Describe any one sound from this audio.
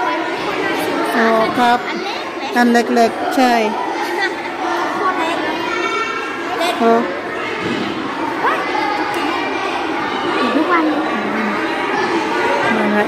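A young girl talks excitedly nearby.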